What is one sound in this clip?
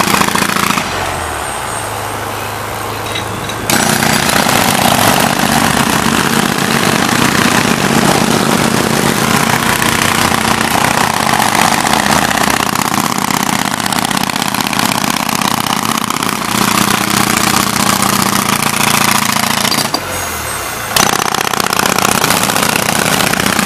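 Jackhammers pound rapidly on asphalt close by.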